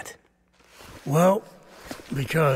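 Another man answers calmly, close by.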